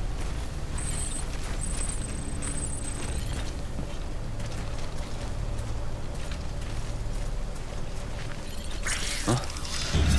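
Footsteps crunch softly on gravel.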